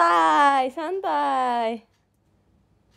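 A young woman speaks in a high, playful voice close by, then falls quiet.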